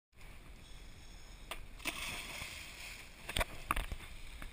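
A diver splashes into the sea.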